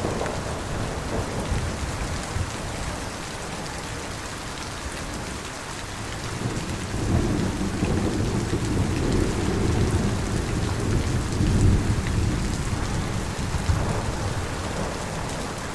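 Heavy rain pours steadily and splashes on hard ground outdoors.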